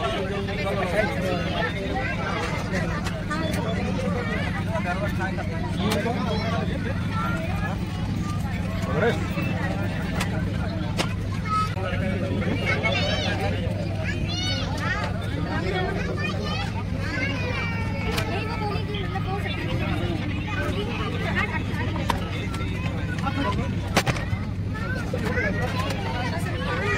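A steady low engine hum drones throughout.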